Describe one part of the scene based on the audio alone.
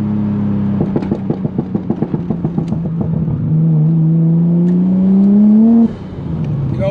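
A car engine drones and revs up loudly from inside the car.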